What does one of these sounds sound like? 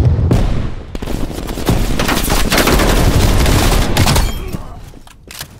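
An assault rifle fires in bursts.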